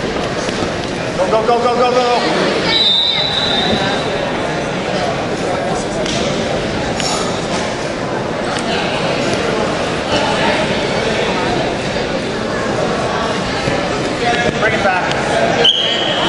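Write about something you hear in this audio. Wrestlers thump and scuff on a mat.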